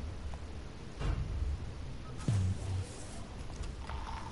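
A heavy metal door slides open with a deep rumble.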